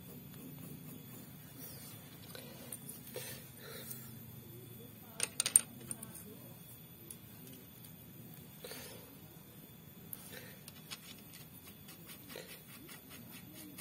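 Metal parts clink and tap as they are handled.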